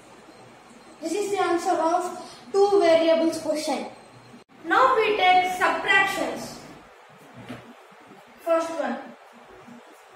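A boy speaks clearly and steadily close by.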